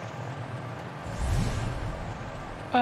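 A bubble swells with a soft whoosh.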